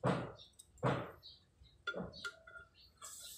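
Metal parts clank and knock sharply close by.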